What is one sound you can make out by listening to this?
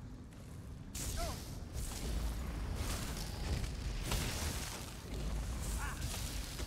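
Electric lightning crackles and snaps.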